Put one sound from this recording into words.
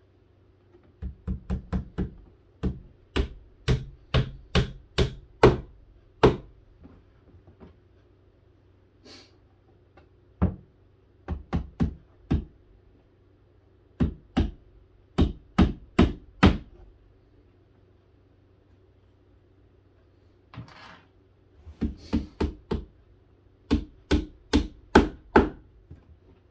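A hammer taps repeatedly on wooden boards in bursts.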